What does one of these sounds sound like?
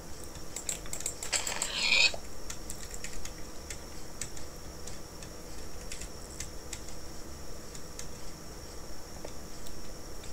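Keyboard keys click rapidly and steadily.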